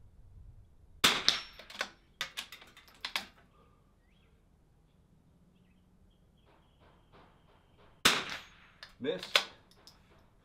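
A rifle fires loud shots that echo outdoors.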